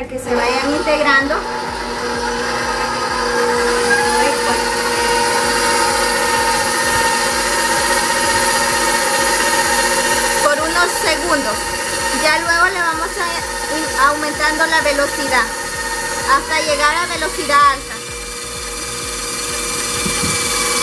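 An electric stand mixer whirs steadily.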